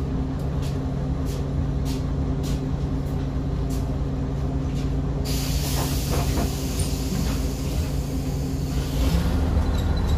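A diesel city bus engine idles, heard from inside.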